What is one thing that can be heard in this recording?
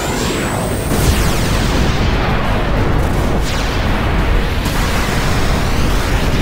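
A heavy magical blast rumbles and explodes.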